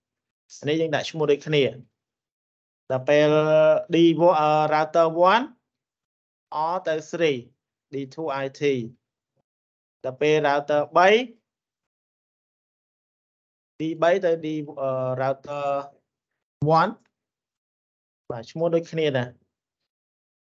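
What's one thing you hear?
A man explains calmly, heard through an online call.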